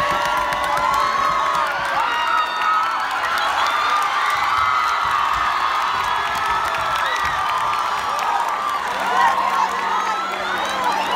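A large crowd cheers and screams loudly in an echoing gym.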